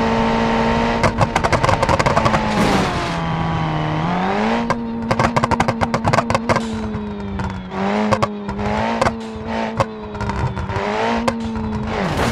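Tyres rumble and clatter over a rough road surface.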